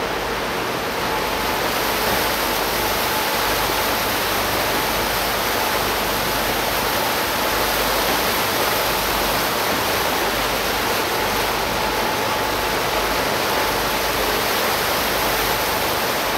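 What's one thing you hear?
Churning water rushes in a boat's wake, growing louder.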